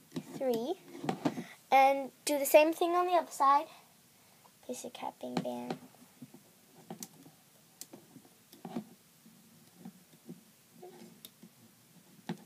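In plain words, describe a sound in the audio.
Rubber bands softly snap and rustle on a plastic loom.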